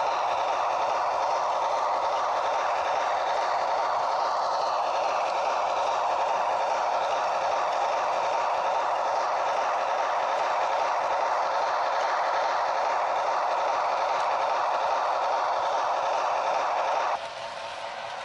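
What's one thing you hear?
A model train whirs and rattles steadily along its track.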